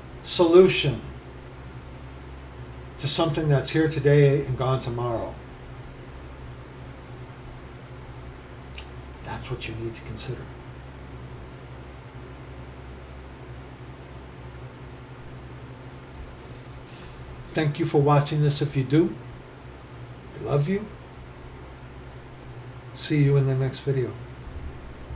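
A middle-aged man speaks calmly into a nearby microphone, with long pauses.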